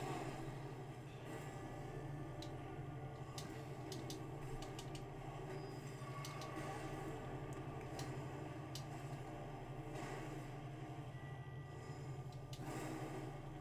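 Flames whoosh and crackle in bursts.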